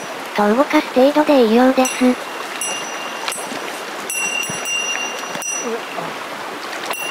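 A shallow stream ripples and gurgles steadily outdoors.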